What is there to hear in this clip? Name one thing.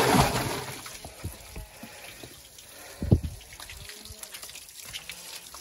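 Water trickles from a hose into a barrel.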